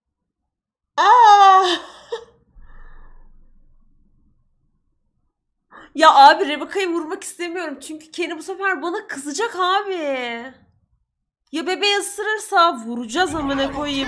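A woman talks with animation, close to a microphone.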